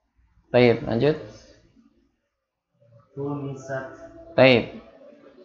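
A young man speaks calmly and clearly into a close microphone, pausing between phrases.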